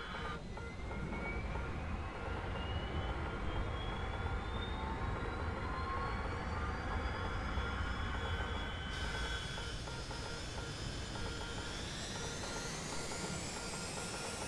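A low engine roar rumbles steadily.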